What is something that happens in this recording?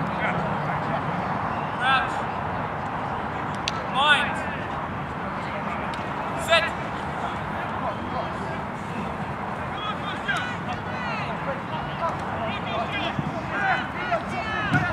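Young women playing rugby shout to each other outdoors.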